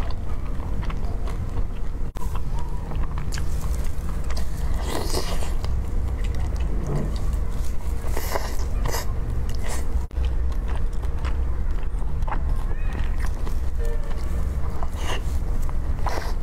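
A woman chews and slurps saucy food close to a microphone.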